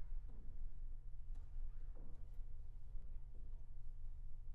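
A violin plays softly in an echoing hall.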